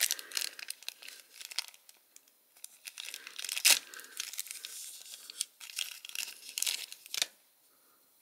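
Paper crinkles and rustles between fingers.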